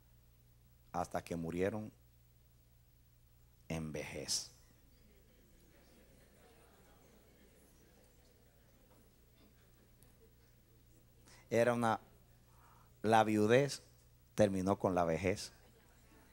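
A middle-aged man speaks with animation through a microphone in short bursts, amplified through loudspeakers.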